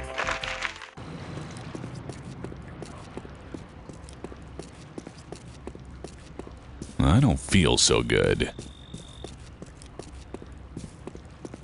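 Footsteps tread steadily over grass and dirt.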